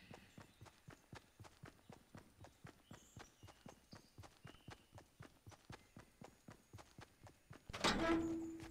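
Footsteps patter quickly and steadily on hard ground.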